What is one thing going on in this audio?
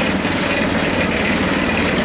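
Dry powder pours into a cement mixer drum.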